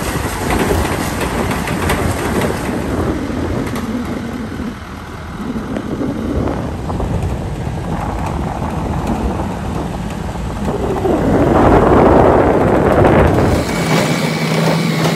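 A vehicle's engine hums as it drives along a bumpy road outdoors.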